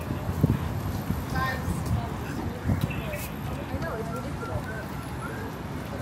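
Voices of passers-by murmur nearby.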